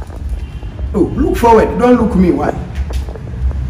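A young man speaks nearby.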